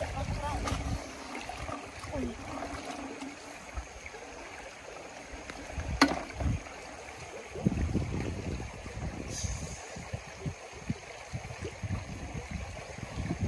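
Water splashes as a girl reaches into the stream.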